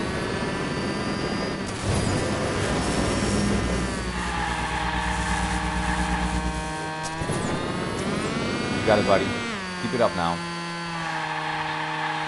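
A racing car engine whines and revs steadily, shifting pitch up and down.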